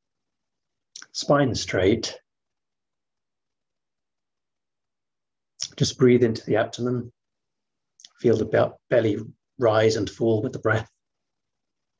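A man speaks calmly and slowly through an online call, with long silent pauses.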